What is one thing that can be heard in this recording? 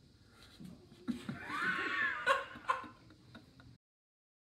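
A young man laughs loudly close by.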